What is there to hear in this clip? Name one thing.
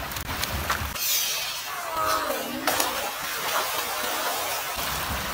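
Water splashes loudly as a man falls into shallow surf.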